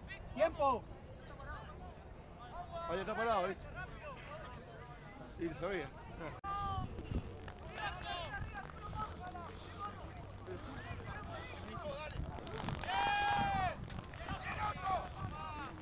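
Young players shout to each other outdoors across an open field.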